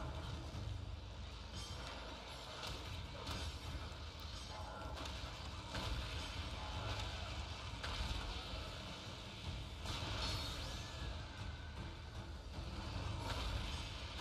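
Weapon strikes clash and thud over a deep rumble.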